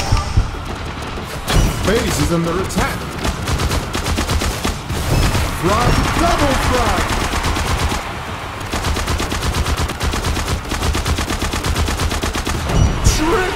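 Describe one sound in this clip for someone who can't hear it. Game sound effects of hits and impacts ring out.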